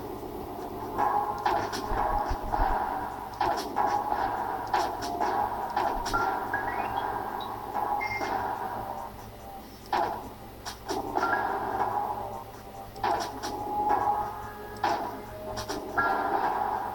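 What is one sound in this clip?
Electronic game sound effects zap and burst.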